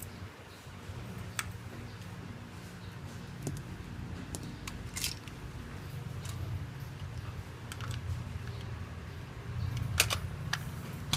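Small objects click as they are placed into a bag.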